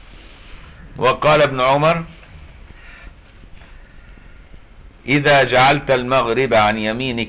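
An elderly man speaks with feeling through a microphone, in short bursts.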